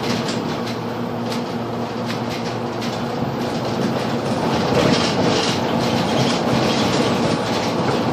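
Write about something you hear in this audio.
A bus engine hums steadily while driving along a road.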